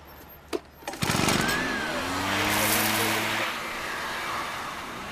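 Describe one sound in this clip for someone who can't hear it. A hand-cranked device whirs and rattles.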